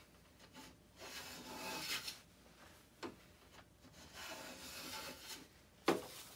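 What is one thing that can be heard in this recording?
A hand plane shaves wood with a rasping hiss.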